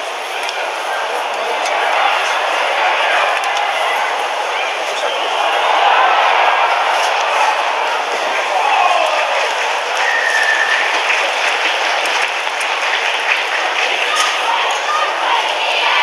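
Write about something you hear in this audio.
Young women shout to each other in the distance across an open field.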